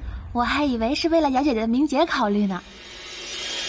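A young woman speaks softly and plaintively close by.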